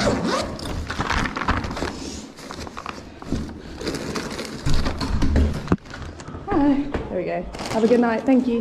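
Plastic bags rustle as they are handled up close.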